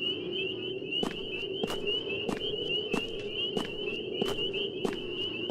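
Footsteps walk steadily on hard ground.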